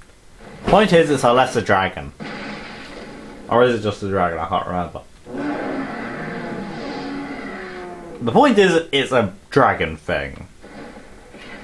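Game monsters roar and screech loudly through a television speaker.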